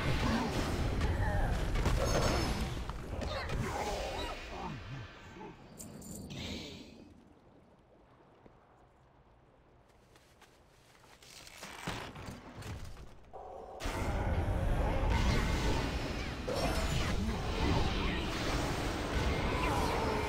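Spell blasts crackle and boom in a fight.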